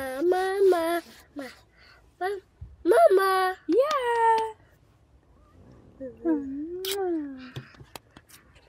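A toddler babbles and squeals loudly close by.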